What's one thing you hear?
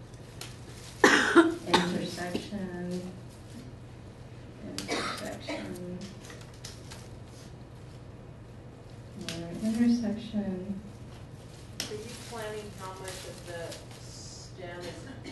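A young woman speaks into a microphone through a loudspeaker in a room with some echo.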